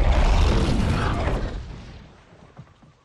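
A fiery explosion roars and fades.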